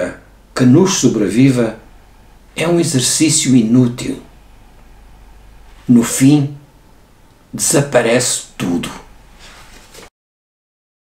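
An elderly man reads aloud calmly and closely into a microphone, with pauses.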